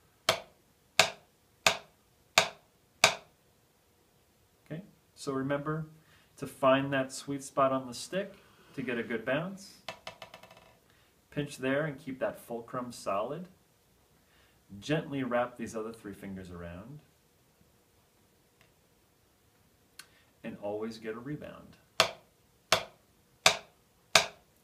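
Drumsticks strike a practice pad in slow, evenly spaced taps.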